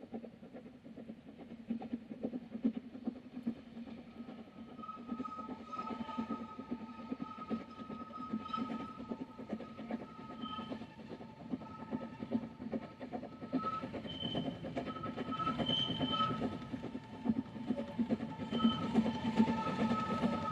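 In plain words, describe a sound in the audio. A steam locomotive chuffs rhythmically as it climbs, growing louder as it approaches.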